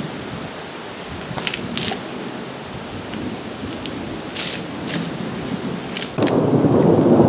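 Wood knocks and snaps.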